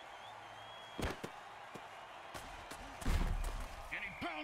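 Armoured players crash into each other with heavy thuds.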